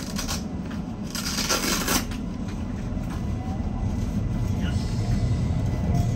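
A train's wheels rumble over the rails as it pulls away.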